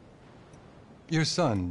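A man speaks up briefly nearby.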